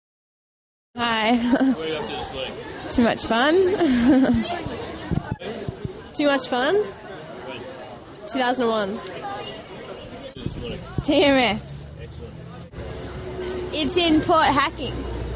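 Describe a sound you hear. A young woman speaks cheerfully close by.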